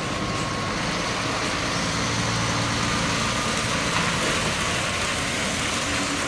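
A heavy truck drives slowly past, its engine growling.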